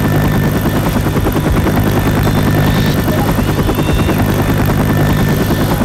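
A helicopter's rotors thump loudly and steadily close by.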